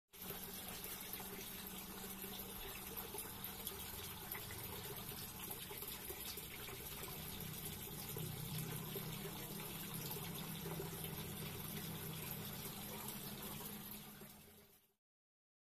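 Air bubbles gurgle steadily in a water tank.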